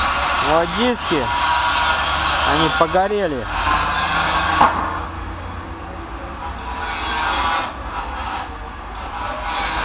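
Metal parts clink as they are handled.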